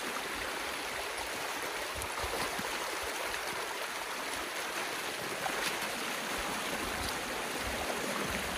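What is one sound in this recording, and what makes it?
Water rushes and gurgles steadily through a small stream.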